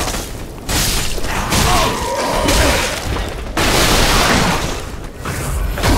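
A creature grunts and groans as it is struck.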